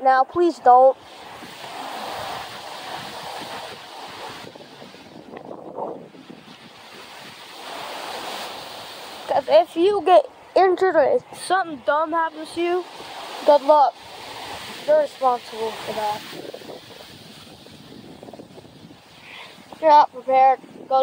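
Strong wind gusts through trees.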